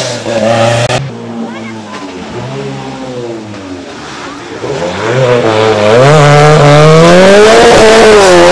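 Another rally car engine revs and climbs in pitch as the car accelerates by.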